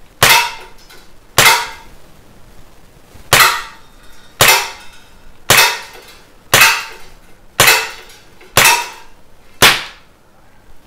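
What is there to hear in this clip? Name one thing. A pistol fires sharp shots one after another, with a short echo indoors.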